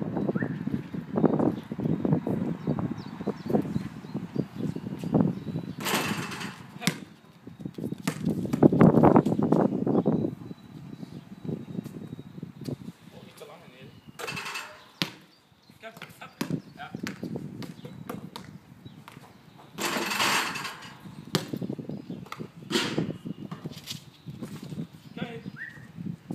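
A basketball bounces on concrete outdoors.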